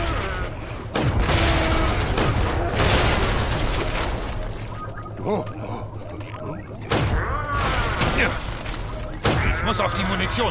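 Blasters fire with sharp zaps.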